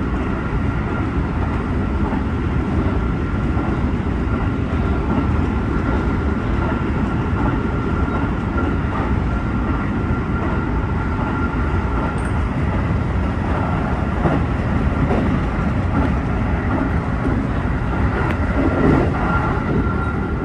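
A train's motor hums with a steady whine.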